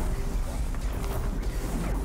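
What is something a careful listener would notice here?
Electricity crackles and buzzes.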